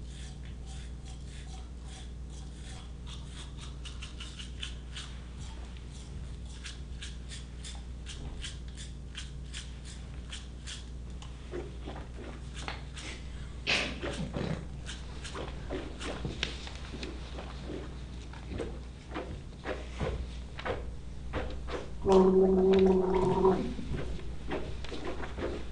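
People make quick clicking and popping sounds with their mouths in a rhythm.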